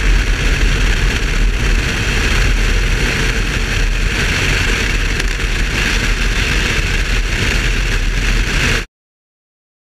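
A car engine roars loudly at high speed.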